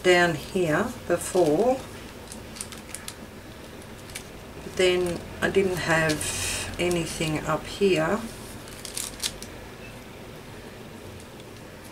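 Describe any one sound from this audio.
Paper rustles softly as fingers press and smooth it.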